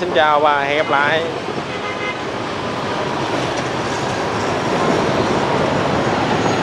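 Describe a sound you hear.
Many motorbike engines hum and buzz along a busy road close by.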